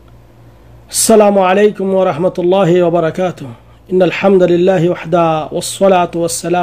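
A man speaks calmly and close, as if into a phone.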